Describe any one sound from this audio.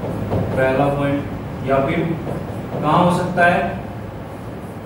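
A man speaks calmly into a microphone, as if teaching.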